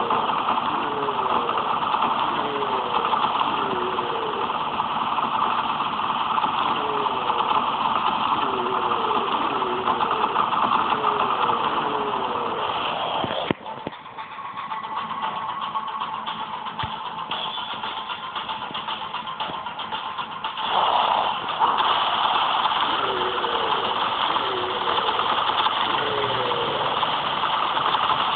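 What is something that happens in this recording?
Rapid gunfire rattles without a break.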